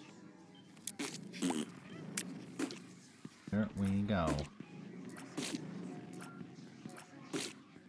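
Video game shots pop and splat in quick bursts.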